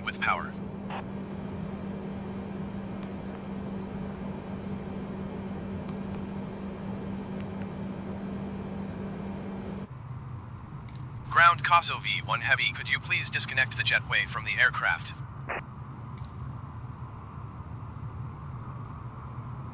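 A parked jet airliner hums steadily.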